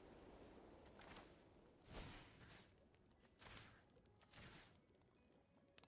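Magical whooshing sound effects sweep past in quick bursts.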